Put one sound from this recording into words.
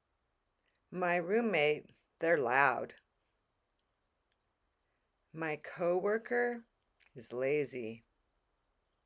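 A middle-aged woman speaks expressively close to a microphone, in short bursts with pauses.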